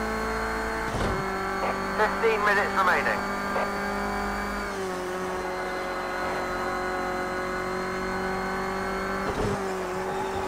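A racing car engine shifts gears with sudden drops in pitch.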